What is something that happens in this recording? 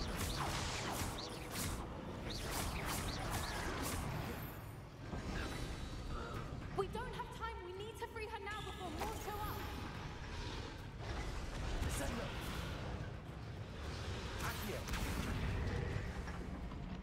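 Magic spells crackle and burst in quick blasts.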